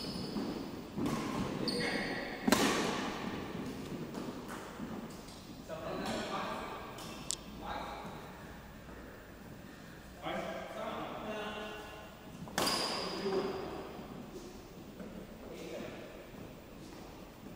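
Rackets hit a shuttlecock with sharp pops in a large echoing hall.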